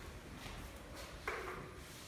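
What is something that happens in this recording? An elevator call button clicks once.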